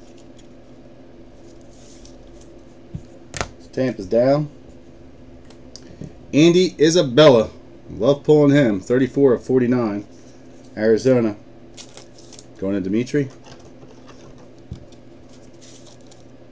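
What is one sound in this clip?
Plastic card holders click and rattle in hands.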